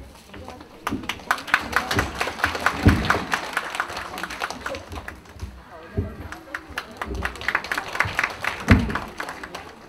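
Children play a lively tune on ocarinas in an echoing hall.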